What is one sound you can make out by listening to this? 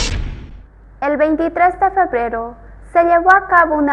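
A young girl sings clearly, close to the microphone.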